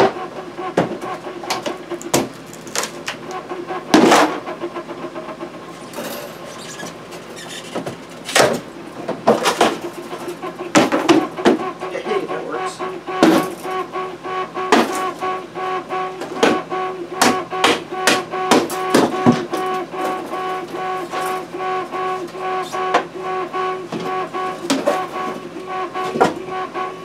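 A hammer knocks sharply on wood, again and again.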